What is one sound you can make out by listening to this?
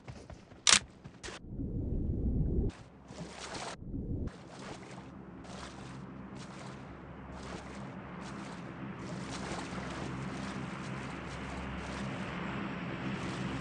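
Water splashes steadily as a swimmer paddles.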